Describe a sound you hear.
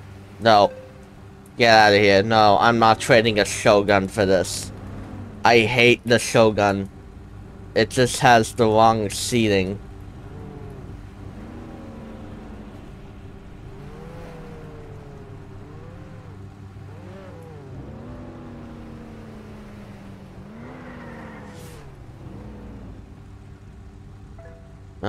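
A car engine hums and revs softly.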